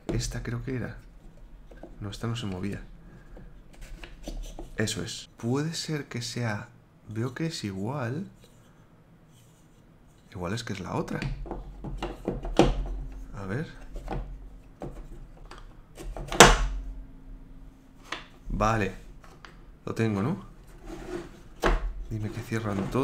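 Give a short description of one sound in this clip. Wooden pieces click and knock together.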